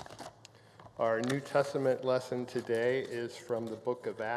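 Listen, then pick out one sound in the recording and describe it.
An older man reads aloud through a microphone.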